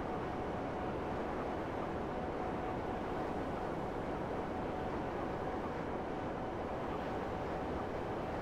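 A jet-powered hoverbike roars steadily as it flies.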